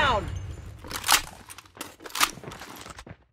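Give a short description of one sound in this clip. A rifle magazine clicks during a reload.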